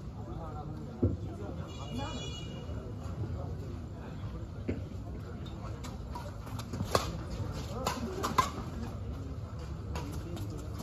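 Shuttlecocks are struck sharply with rackets.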